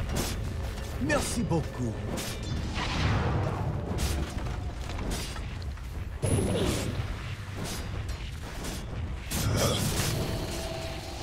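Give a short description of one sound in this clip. Magic blasts boom and crackle.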